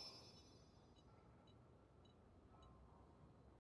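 Soft menu ticks blip as options are hovered.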